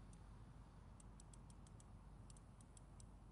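A combination lock dial clicks softly as it turns.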